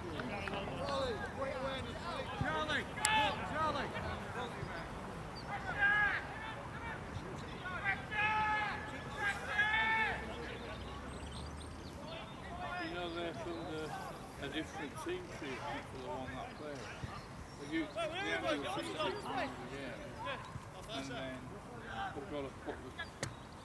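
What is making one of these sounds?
Men shout to each other from across an open field.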